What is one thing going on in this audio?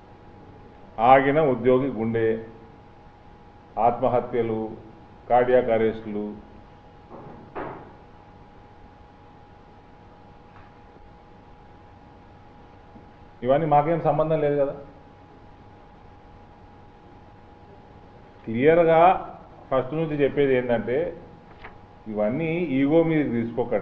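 A man speaks into a microphone in bursts, with long pauses.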